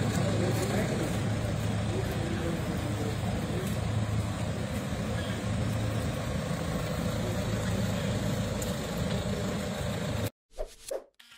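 A car engine hums steadily as a vehicle rolls slowly over paving.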